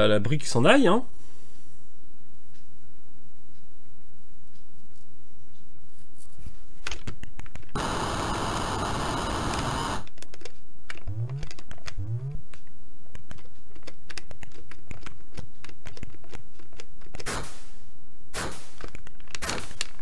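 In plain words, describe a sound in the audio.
Electronic video game sounds beep and chirp.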